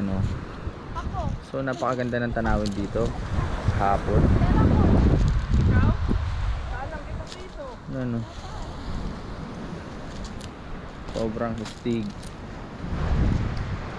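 Wind blows hard outdoors, rumbling.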